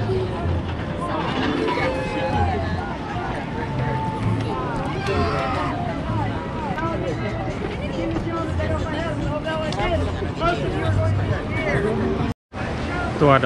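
People chatter and talk nearby outdoors.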